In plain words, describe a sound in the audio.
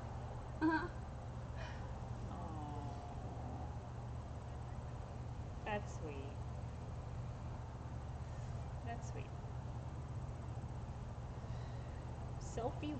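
A young woman speaks quietly now and then, close by.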